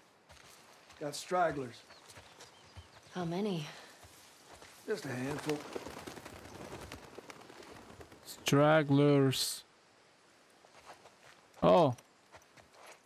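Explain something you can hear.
A man talks in short bursts close to a microphone.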